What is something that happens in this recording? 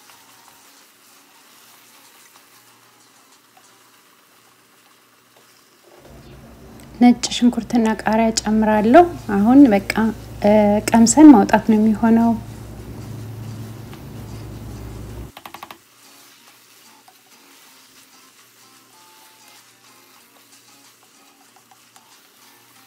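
A wooden spoon scrapes and stirs food in a pot.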